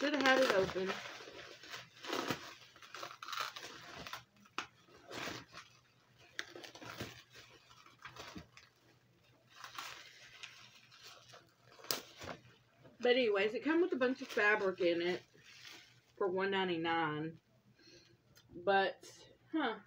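Fabric rustles as it is handled.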